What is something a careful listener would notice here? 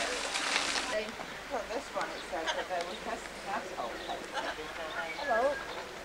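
Birds chirp and squawk nearby.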